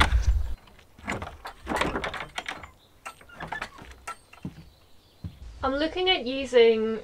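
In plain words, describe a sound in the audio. Objects clatter and knock as they are moved about.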